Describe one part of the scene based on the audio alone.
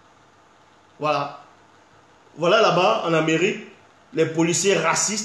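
A man speaks calmly and close up, with pauses.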